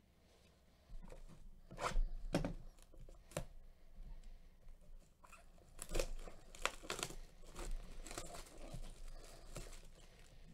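Gloved hands rustle and crinkle plastic wrapping on a cardboard box.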